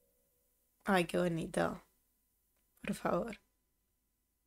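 A young woman speaks with animation close to a microphone, in short bursts.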